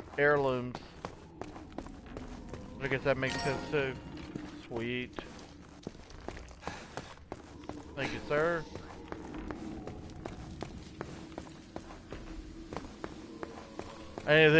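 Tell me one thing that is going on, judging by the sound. A man talks in short bursts into a close microphone.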